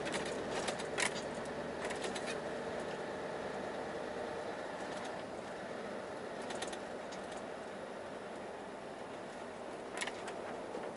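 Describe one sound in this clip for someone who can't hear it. Small rattles and clicks sound inside the cab.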